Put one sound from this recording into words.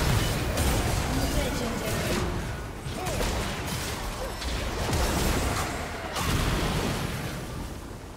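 Magic spells burst and crackle in a hectic fight.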